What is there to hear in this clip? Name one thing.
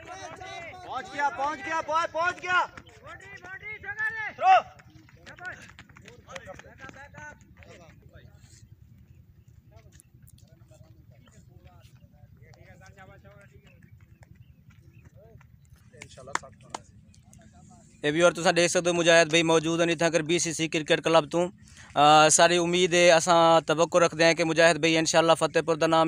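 A young man talks close by, calmly and casually.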